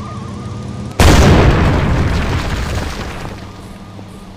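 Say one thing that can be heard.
A heavy robot lands with a loud booming thud.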